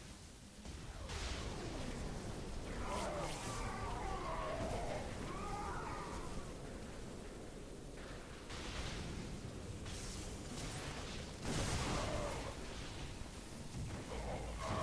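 Explosions boom and crackle amid a battle.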